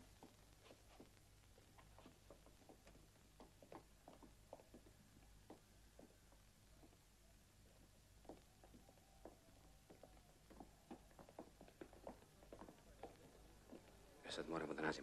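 Many footsteps shuffle and tap on cobblestones.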